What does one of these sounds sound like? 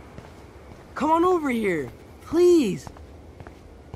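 A man calls out loudly from a short distance.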